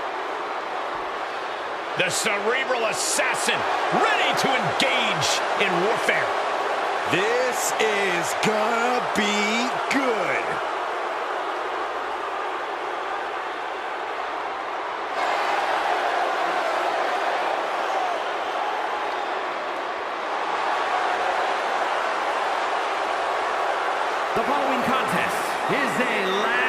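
A large crowd cheers and roars in a huge echoing arena.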